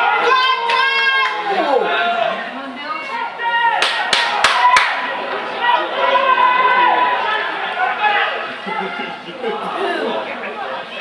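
Young women shout and call out loudly to each other outdoors.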